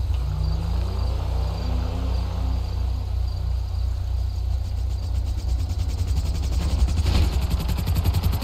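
A car engine hums and revs nearby.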